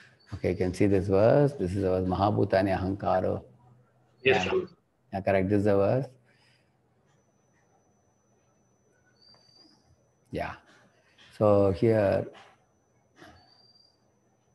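An elderly man speaks calmly through an online call, in bursts with pauses.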